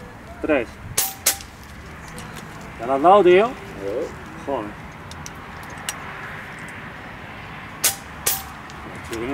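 Air rifles fire with sharp, snapping cracks outdoors.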